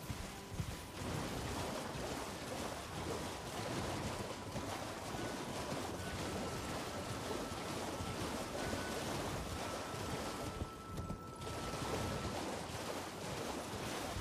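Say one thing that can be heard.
A horse splashes through shallow water.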